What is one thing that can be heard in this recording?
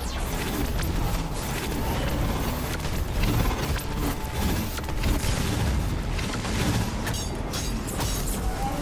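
Explosions rumble heavily.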